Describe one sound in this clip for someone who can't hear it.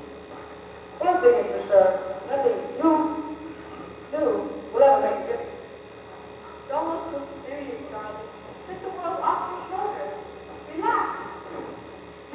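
A man speaks theatrically on a stage in a large hall, heard from the audience.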